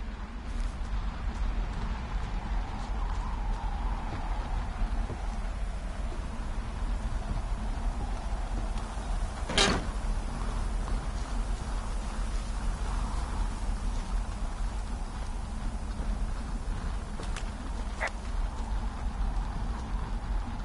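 Footsteps crunch on gravel and then thud on wooden stairs.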